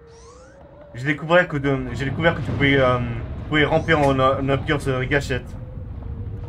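A man talks with animation through a microphone.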